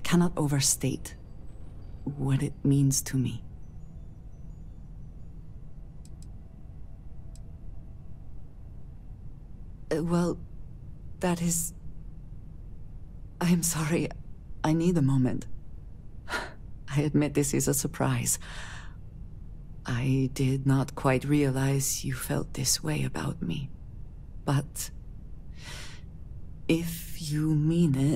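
A young woman speaks calmly and softly, close to the microphone.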